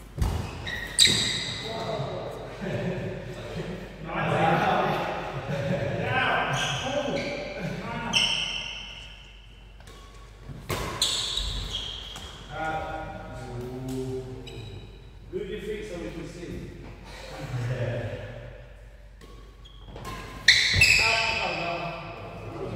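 Sports shoes squeak on a wooden floor.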